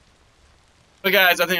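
A young man speaks loudly and suddenly into a microphone.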